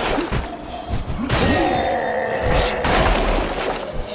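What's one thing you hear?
A wolf snarls and growls.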